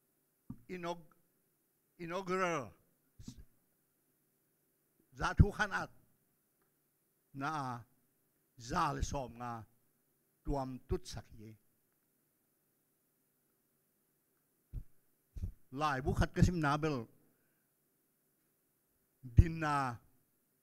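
An elderly man speaks into a microphone in short, animated phrases with long pauses.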